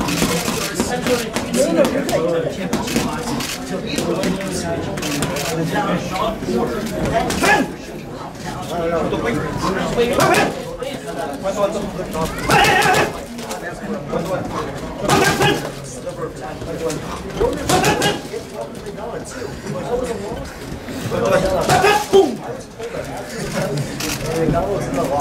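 Punches smack sharply into padded mitts.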